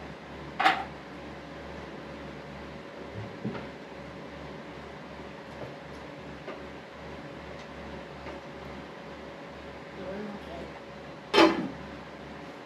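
Metal utensils clink and clatter against pots.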